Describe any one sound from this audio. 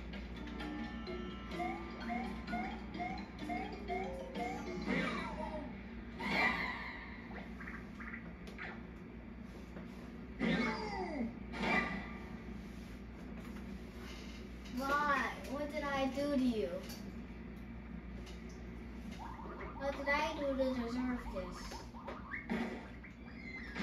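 Cheerful video game music plays from a television speaker.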